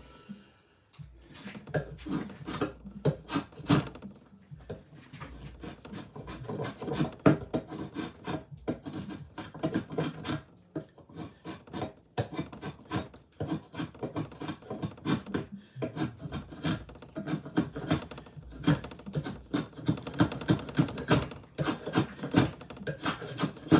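A drawknife scrapes and shaves wood in quick strokes.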